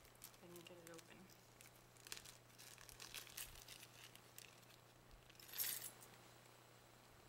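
Hands rustle and handle small craft items.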